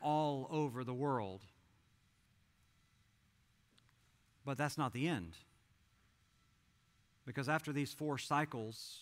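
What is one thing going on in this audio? A man speaks with animation into a microphone, heard through loudspeakers with pauses between phrases.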